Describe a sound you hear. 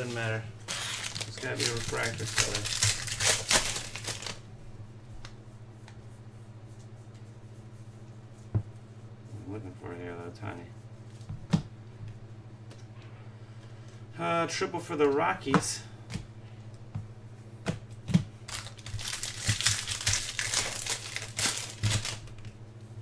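A foil wrapper crinkles and tears loudly.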